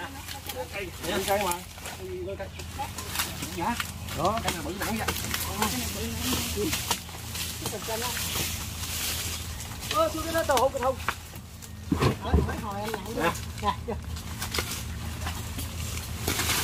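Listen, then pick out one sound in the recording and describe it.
A heavy log thuds and scrapes on the ground as men push it.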